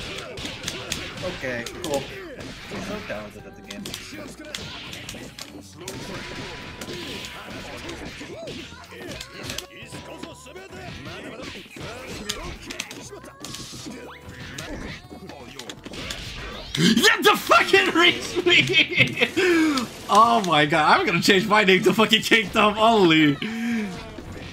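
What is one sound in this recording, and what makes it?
Punches and hits land with sharp smacks in a fighting game.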